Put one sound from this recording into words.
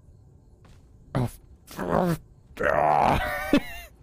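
A heavy body thuds onto hard ground.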